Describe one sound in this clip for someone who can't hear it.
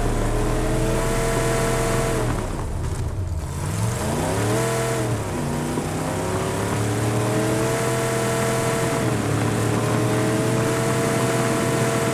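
Tyres rumble over dirt.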